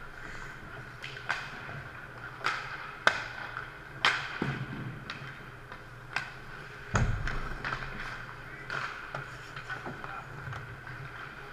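Hockey pucks crack off sticks and boards in an echoing indoor ice rink.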